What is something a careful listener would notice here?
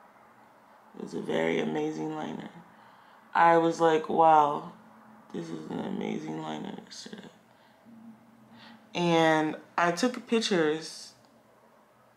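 A young woman talks close by in a calm, chatty way.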